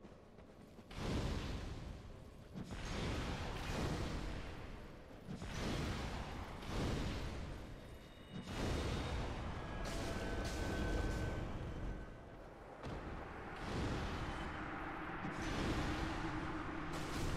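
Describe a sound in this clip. Fireballs roar and burst repeatedly in loud, rumbling blasts.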